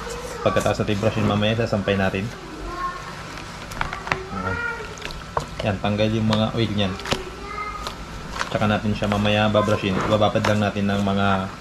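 Water sloshes in a basin as a shoe is moved about.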